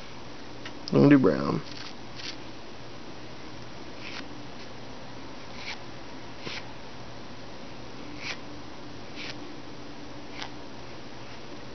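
Thread rasps and ticks softly as it is wound by hand.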